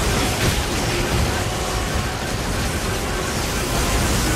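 Metal weapons clash and slash repeatedly.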